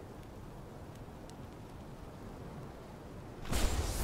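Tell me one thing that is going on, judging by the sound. Large wings flap in flight.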